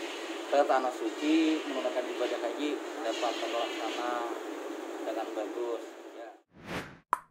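A man speaks calmly into a close microphone, his voice thin and muffled.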